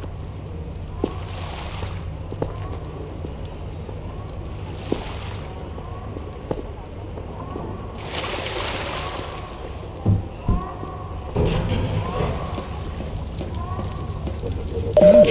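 Footsteps crunch slowly over gravel and rubble.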